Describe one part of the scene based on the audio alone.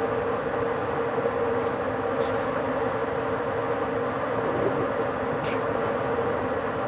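A train rumbles steadily along the rails with a constant motor hum.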